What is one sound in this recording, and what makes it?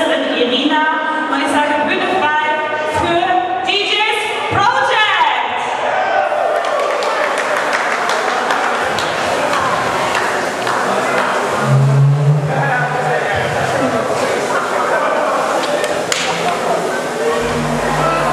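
Pop music plays loudly through speakers.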